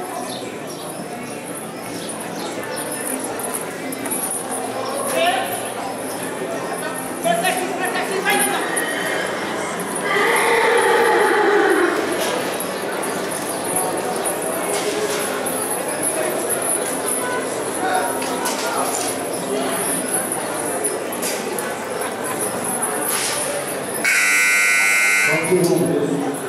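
Horses' hooves thud on deep sand in a large indoor arena.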